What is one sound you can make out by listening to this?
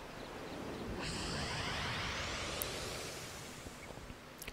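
A bright magical whoosh swells and fades.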